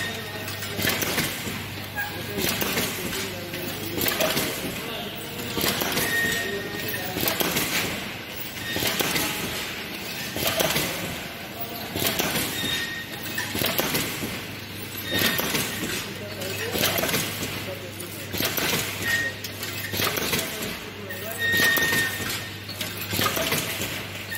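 Dry snack pieces rattle and pour through a metal chute in repeated bursts.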